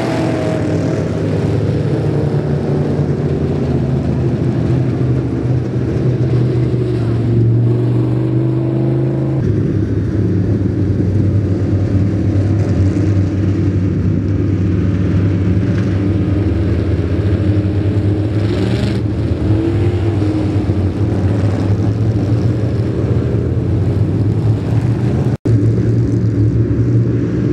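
Race car engines roar loudly and steadily outdoors.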